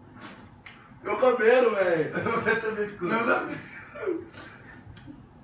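A young man laughs loudly nearby.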